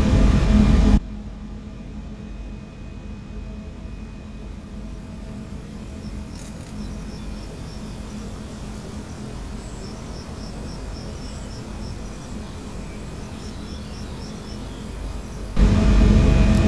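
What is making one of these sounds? A train rolls along the rails, heard more quietly from outside.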